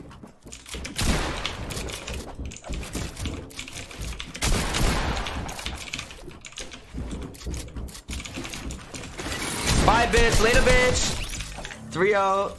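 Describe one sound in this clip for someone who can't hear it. Shotguns fire in loud, sharp blasts.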